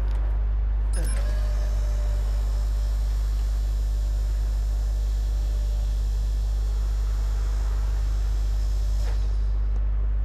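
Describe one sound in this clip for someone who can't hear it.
A lift platform whirs steadily as it rises.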